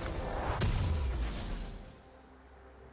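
A magical blast bursts with a loud whoosh and rumble.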